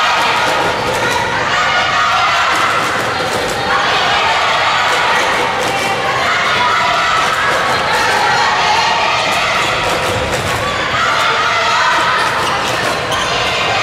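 Girls and young women shout and call out to each other across a large echoing hall.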